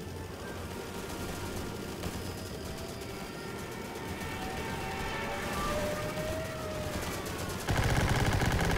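A boat engine rumbles low and steady.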